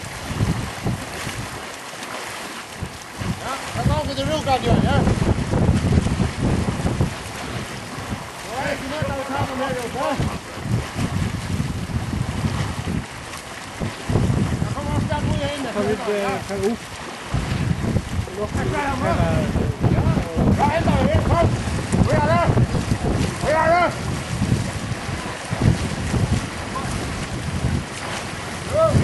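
Water splashes and churns as a group of swimmers kick.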